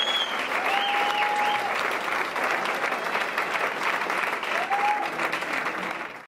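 An audience applauds in a theatre hall.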